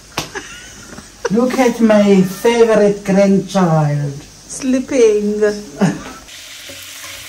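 An elderly woman speaks warmly and close by.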